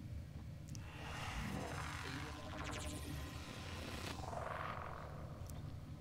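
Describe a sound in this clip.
A blade whooshes through the air as it is swung.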